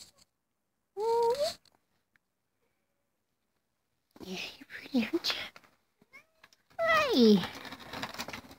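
A cat meows loudly up close.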